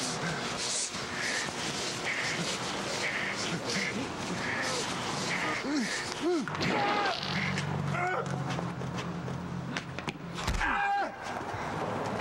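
Men talk loudly close by.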